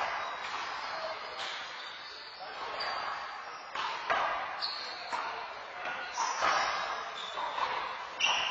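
Sneakers squeak and shuffle on a hard floor.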